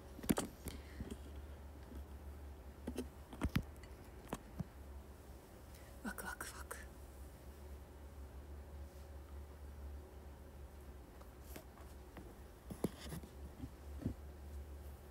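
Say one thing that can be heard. Fingers rub and knock against a microphone.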